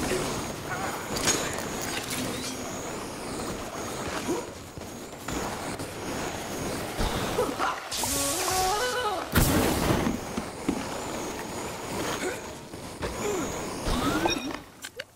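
Jet boots hiss and whoosh in short bursts.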